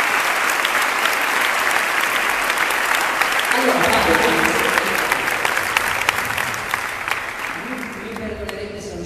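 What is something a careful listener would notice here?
A crowd applauds loudly in a large echoing hall, then the clapping fades.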